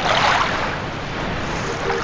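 Water laps and splashes gently outdoors.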